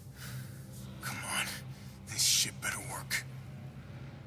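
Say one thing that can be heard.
A man speaks quietly and hoarsely, close by.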